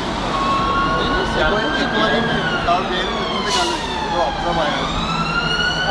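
A man talks animatedly nearby.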